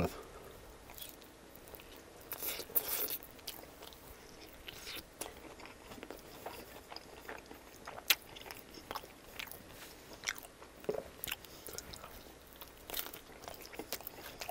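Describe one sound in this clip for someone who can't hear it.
A man chews food with wet, crunchy mouth sounds.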